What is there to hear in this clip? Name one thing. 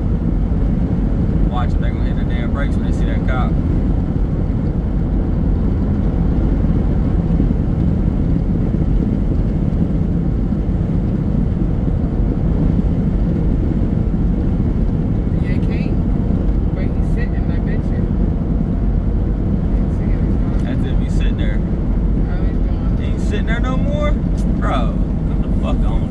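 A car drives steadily along a highway with a low, constant road rumble.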